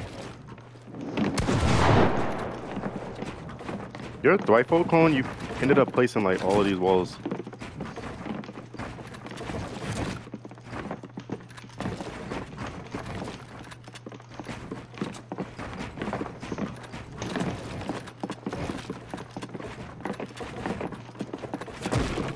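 Building pieces click and thud rapidly in a video game.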